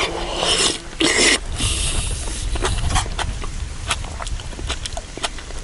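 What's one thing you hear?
A man chews food with crunching and smacking sounds.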